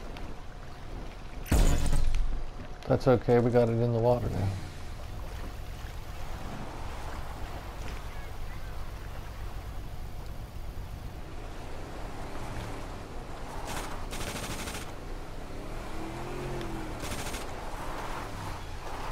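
A speedboat engine rumbles.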